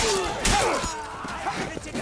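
A sword swings through the air and strikes.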